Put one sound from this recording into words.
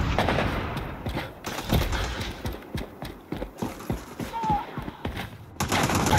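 Quick footsteps thud on hard ground.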